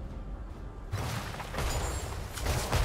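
Game spell effects whoosh and crackle in a sudden burst.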